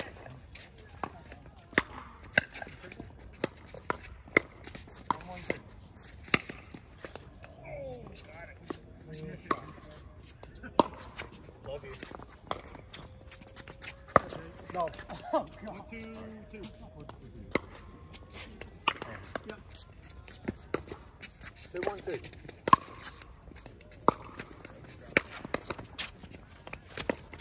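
Paddles strike a plastic ball with sharp, hollow pops, back and forth.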